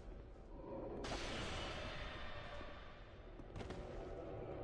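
A magical spell swells with a bright shimmering whoosh.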